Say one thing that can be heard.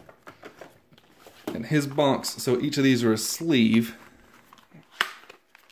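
Stiff cardboard scrapes and rustles as a flat box is pulled out of a larger box.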